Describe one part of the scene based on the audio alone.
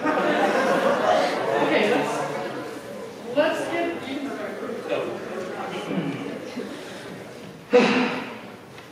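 Young men talk with each other in a large echoing hall.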